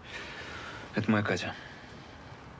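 A young man speaks quietly nearby.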